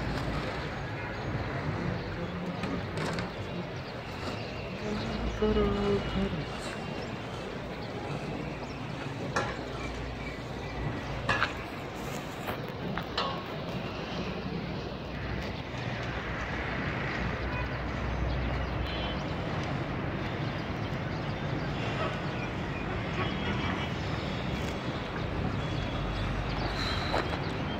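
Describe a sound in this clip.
Distant town traffic hums steadily.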